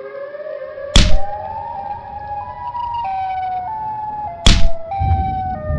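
A heavy punch lands with a loud thud.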